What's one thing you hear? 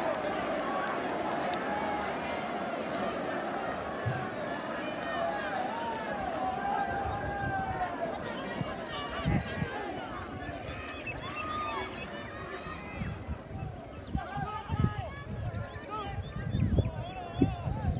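Young men shout to each other across an open playing field, at a distance.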